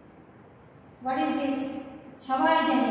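A woman speaks clearly and slowly, close by.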